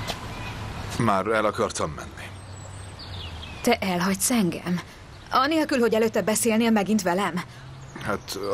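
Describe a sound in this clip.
A woman speaks in a tense, worried voice close by.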